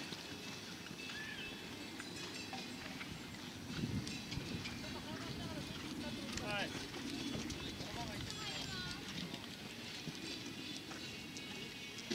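Hooves thud on soft sand as a horse canters.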